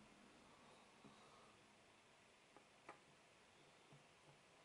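Puzzle pieces click softly as they are picked up and placed on a table.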